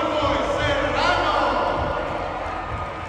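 A crowd cheers and shouts loudly nearby, then quiets down.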